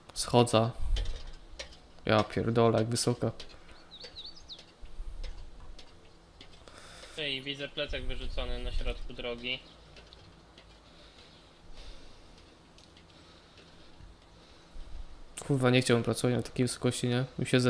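Boots clank steadily on metal ladder rungs during a climb.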